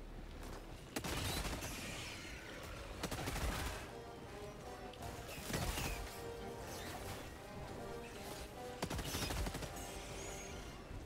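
Gunfire bursts loudly in short volleys.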